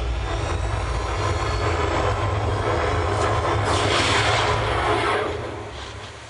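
Loud music with a heavy thumping bass plays through big speakers, then fades down.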